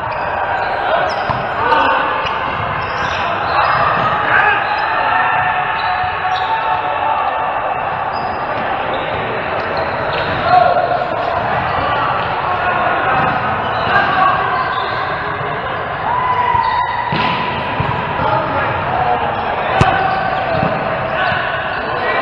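Adult players call out and chat in a large echoing gym.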